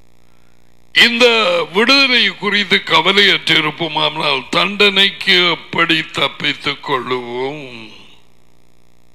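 A man reads aloud steadily into a close microphone.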